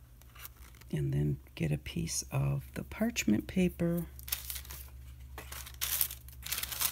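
Paper backing rustles and crinkles as it is peeled away.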